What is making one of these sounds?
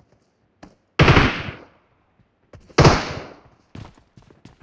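Gunshots ring out loudly with an echoing decay.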